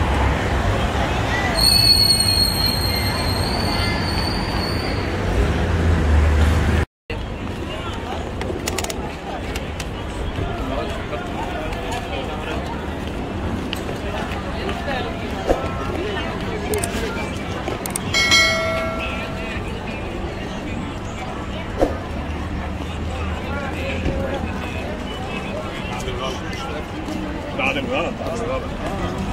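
A crowd of people chatters in the open.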